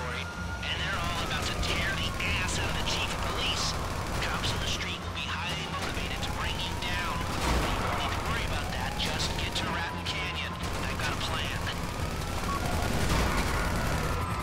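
Helicopter rotors whir overhead.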